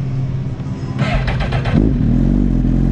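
A motorcycle engine revs up and grows louder.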